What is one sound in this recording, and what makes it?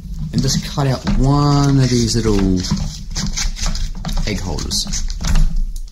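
Scissors snip through a cardboard egg carton.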